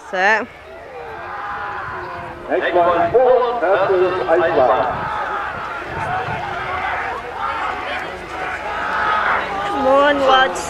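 A crowd of spectators shouts and cheers outdoors.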